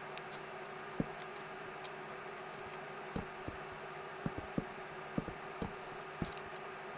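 Wooden blocks are set down with short, soft thuds.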